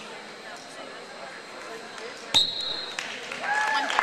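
A referee slaps the mat sharply.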